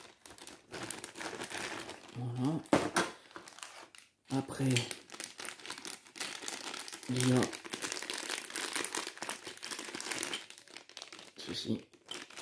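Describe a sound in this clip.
Plastic bags crinkle and rustle as they are handled up close.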